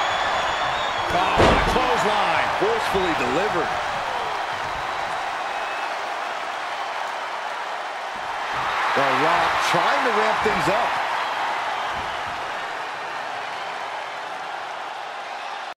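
A large crowd cheers and roars in a big echoing arena.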